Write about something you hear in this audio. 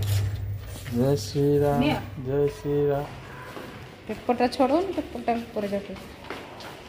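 A young girl speaks excitedly close by.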